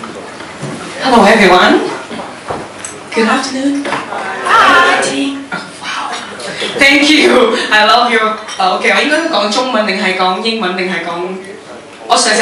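A young woman sings into a microphone, heard through loudspeakers in an echoing hall.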